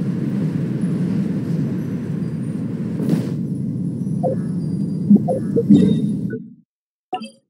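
Wind rushes steadily, then cuts off.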